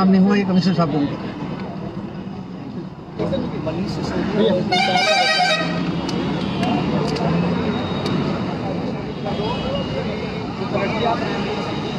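A crowd of men chatters outdoors in the background.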